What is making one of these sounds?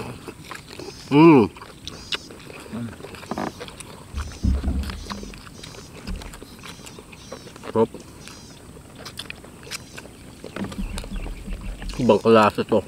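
Crispy food crunches between teeth.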